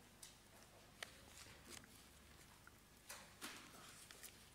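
Paper pages rustle and click softly close by.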